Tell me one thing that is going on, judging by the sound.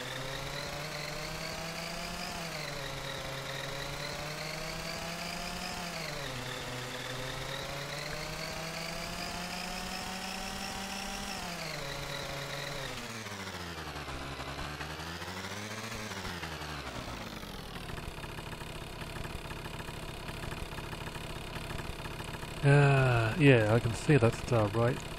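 A small scooter engine hums steadily, rising and falling in pitch as it speeds up and slows down, then settles to an idle.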